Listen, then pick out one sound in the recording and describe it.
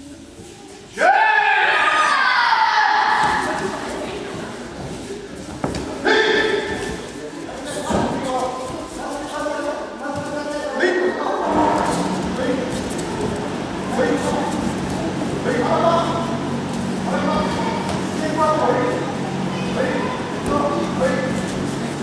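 Children shout and chatter, echoing in a large hall.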